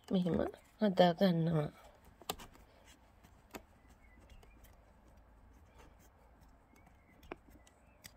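Fingers press a leaf softly into clay.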